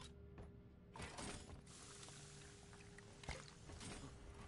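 A drink pours into a mug with a fizzing hiss.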